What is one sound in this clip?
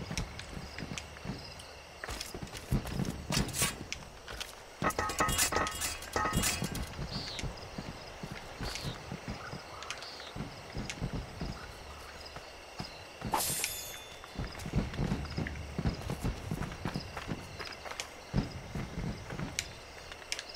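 Footsteps thud softly on grass and dirt.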